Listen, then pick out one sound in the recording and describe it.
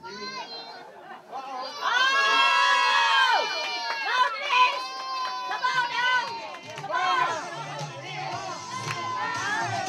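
A group of people sing together.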